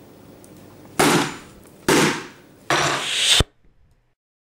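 Loose food crashes down onto a laptop in a few heavy bursts.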